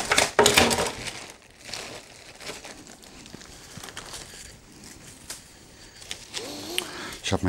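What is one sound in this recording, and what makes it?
Plastic crinkles and rustles close by.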